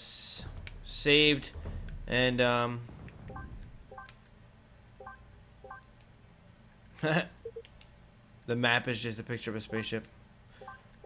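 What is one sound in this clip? A man speaks with animation, close to a headset microphone.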